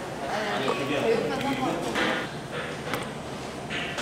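A plastic cap clicks onto a bottle.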